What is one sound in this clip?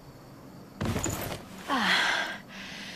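A young woman speaks calmly and wryly, close by.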